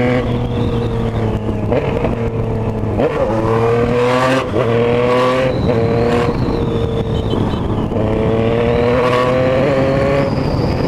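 A motorcycle engine revs up and down as the rider shifts gears.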